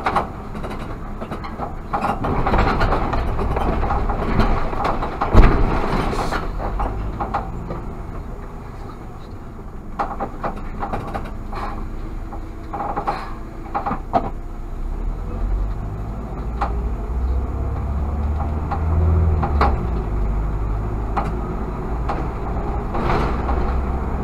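A car engine hums steadily as the car drives along a street.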